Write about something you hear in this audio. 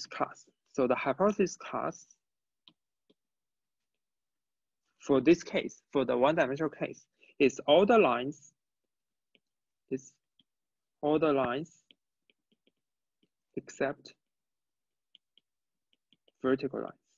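A young man talks calmly in bursts with pauses, close to a microphone.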